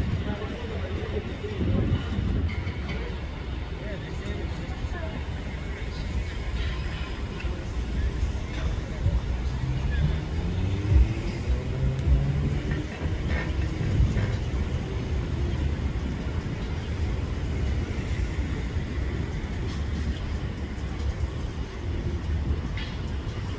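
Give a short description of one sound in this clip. Traffic rumbles steadily on a nearby street.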